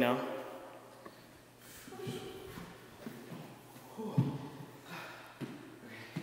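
Feet thud on a wooden floor during a dance move.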